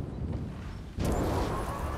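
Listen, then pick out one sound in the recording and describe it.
A motorbike engine roars into life.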